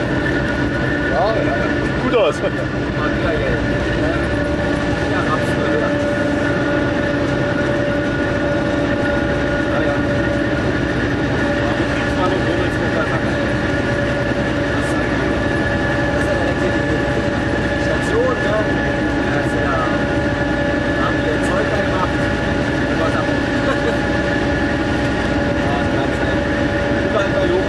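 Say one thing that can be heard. A train's wheels squeal and whine against the track.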